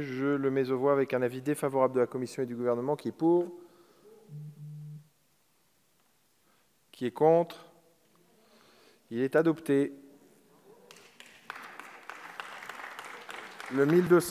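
A man speaks formally into a microphone in a large echoing hall.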